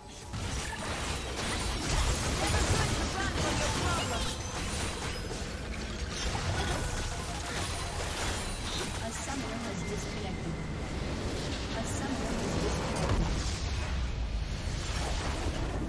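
Magic blasts and clashing hits crackle in a fast fight.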